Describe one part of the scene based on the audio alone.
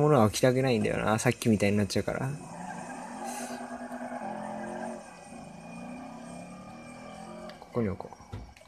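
A car engine revs, then hums steadily.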